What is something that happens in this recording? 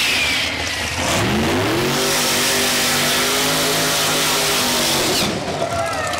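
A loud engine roars and revs as a race car launches and speeds away.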